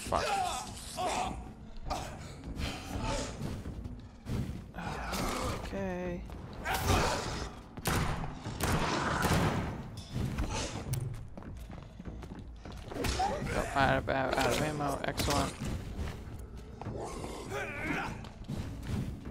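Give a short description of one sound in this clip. Heavy blows strike bodies in a close fight.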